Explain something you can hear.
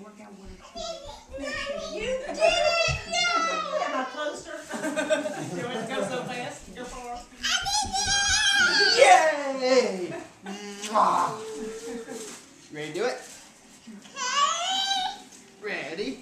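A little girl squeals and babbles excitedly nearby.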